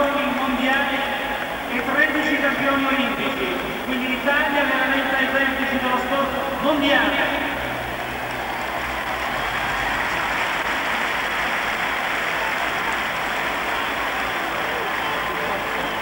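A crowd applauds and cheers in a large open stadium.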